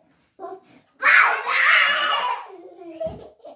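A small child squeals loudly.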